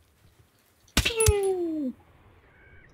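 A scoped rifle fires a single shot that echoes away.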